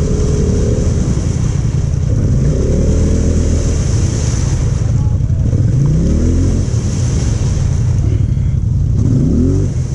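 Tyres churn and splash through thick mud.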